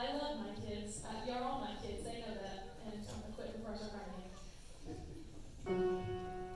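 A large choir sings together in an echoing hall.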